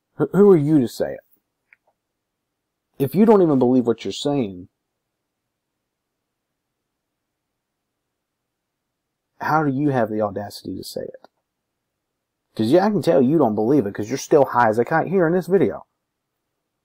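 A young man speaks close to the microphone in short bursts with pauses.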